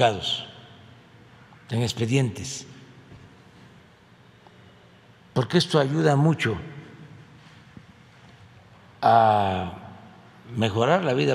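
An elderly man speaks slowly and calmly into a microphone, with pauses between phrases.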